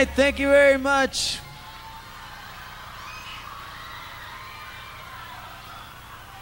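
A man sings into a microphone, heard over loudspeakers in a large hall.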